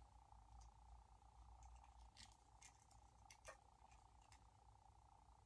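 Small objects click and rustle as a boy handles them on a tabletop.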